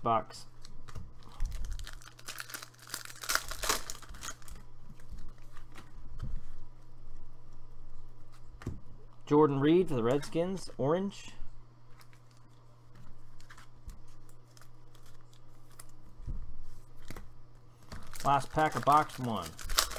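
Plastic wrappers crinkle and rustle close by.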